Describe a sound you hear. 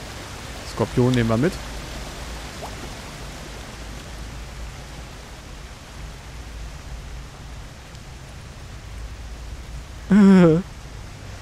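A young man speaks briefly into a microphone, in short bursts.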